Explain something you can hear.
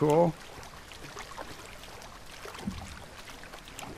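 Water splashes softly as a person wades through it.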